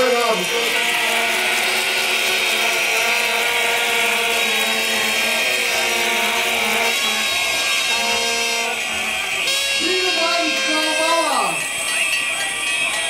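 A man sings loudly through a loudspeaker.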